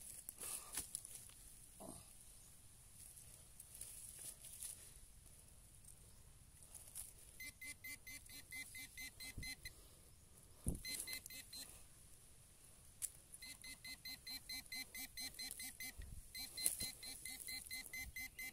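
A hand trowel scrapes and digs into loose soil.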